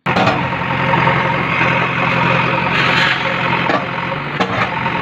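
Concrete walls crack and crumble as a digger smashes them.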